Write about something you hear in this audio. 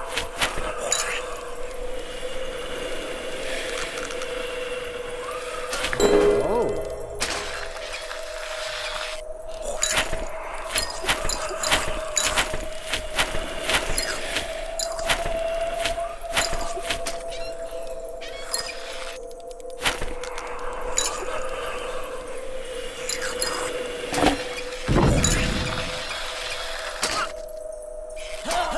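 Light chiming clicks sound from the game now and then.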